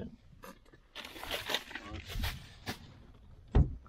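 A plastic packet rustles in a hand.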